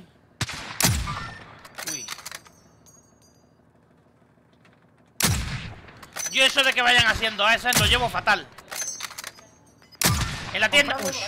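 A rifle fires loud booming shots.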